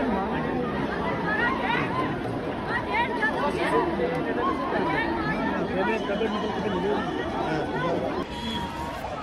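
A large outdoor crowd of men and women chants and calls out loudly together.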